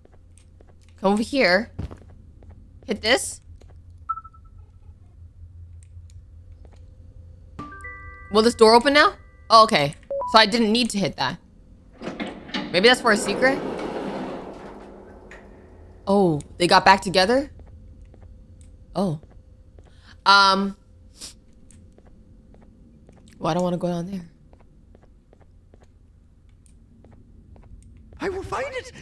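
A young woman talks with animation into a close microphone, in bursts.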